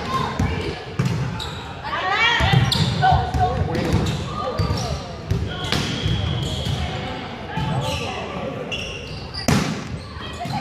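A volleyball thumps off players' arms.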